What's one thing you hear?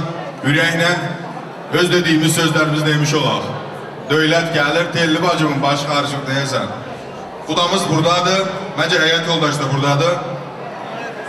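A man speaks loudly and with animation through a microphone over loudspeakers.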